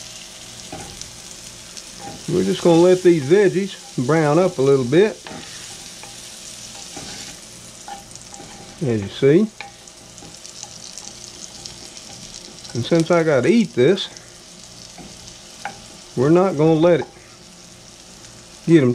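A wooden spoon stirs and scrapes in a pan.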